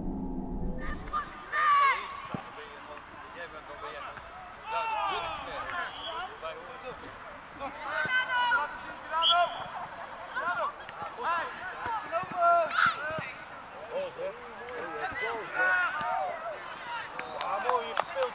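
Young boys shout to each other outdoors on an open field.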